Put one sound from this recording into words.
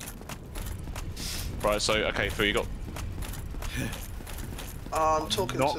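Footsteps run quickly across a stone floor.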